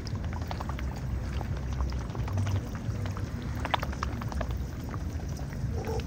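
A swan dabbles its bill in shallow water with wet splashing clicks.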